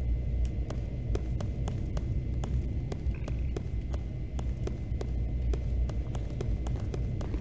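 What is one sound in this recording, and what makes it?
Footsteps tread quickly and evenly on stone.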